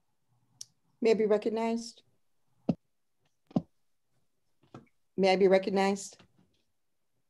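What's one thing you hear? A woman speaks calmly through an online call, in short phrases.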